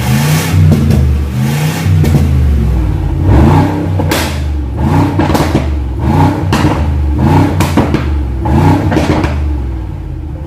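An engine revs repeatedly, roaring loudly through an exhaust.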